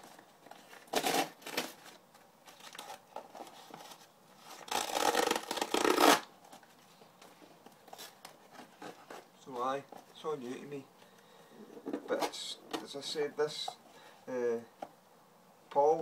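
Paper rustles and tears as a parcel is unwrapped.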